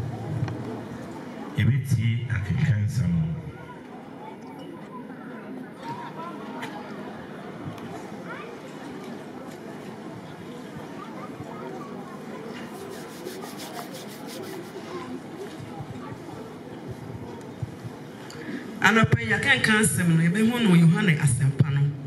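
A crowd murmurs softly in the background outdoors.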